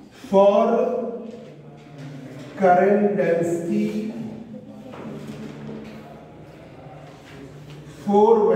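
A man speaks calmly and clearly, as if explaining a lesson.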